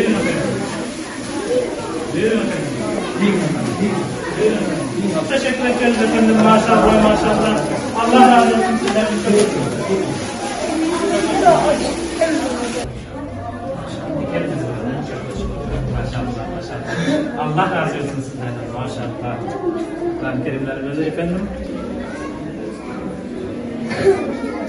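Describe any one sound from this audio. Many children chatter and murmur in an echoing room.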